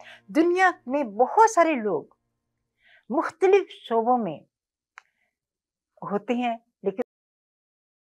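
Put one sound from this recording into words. A woman speaks clearly into a close microphone, in short phrases.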